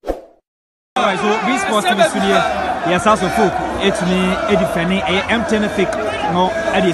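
A man shouts and cheers excitedly close by.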